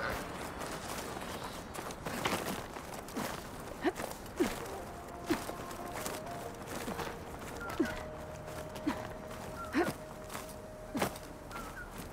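Hands knock and scrape on rock as a climber pulls upward.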